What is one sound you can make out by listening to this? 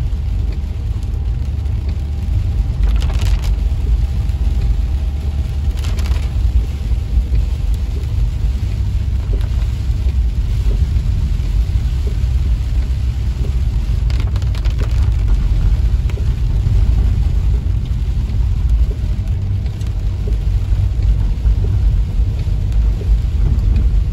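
Windshield wipers swish back and forth.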